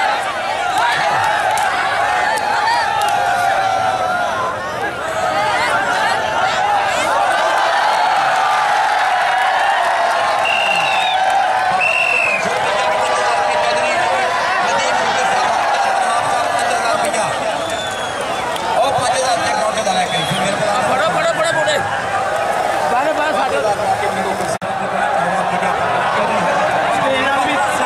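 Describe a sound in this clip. A man commentates excitedly through a loudspeaker.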